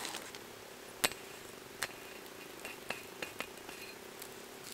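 Metal tongs click against a grill grate.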